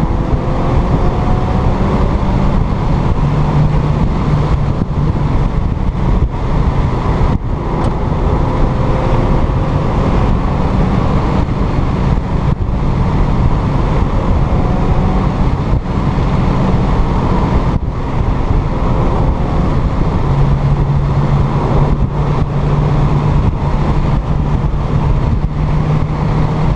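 Tyres rumble steadily on a road.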